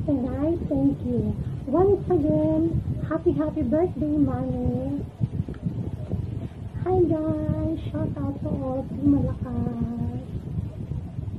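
A woman sings close by.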